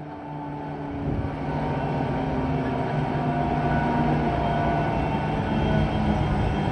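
A diesel locomotive engine rumbles and hums as it approaches, growing louder.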